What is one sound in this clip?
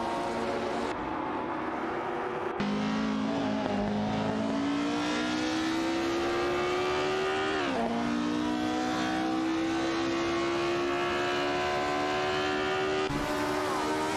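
A racing car engine roars, rising in pitch through each gear and dropping sharply at every gear change.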